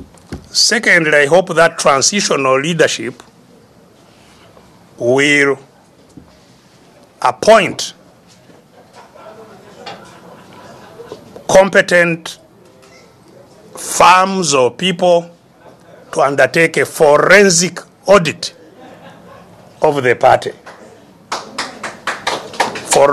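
An elderly man speaks slowly and firmly in bursts with pauses, close to a microphone.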